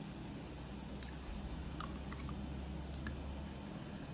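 A metal spoon clinks against a bowl.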